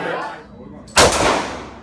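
A gunshot cracks loudly and echoes.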